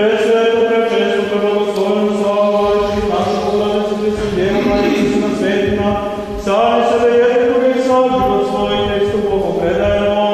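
A man chants in a long, steady voice in an echoing hall.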